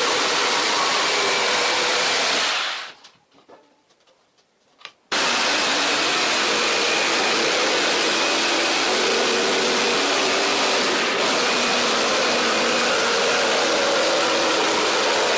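A jigsaw buzzes loudly as it cuts through a board.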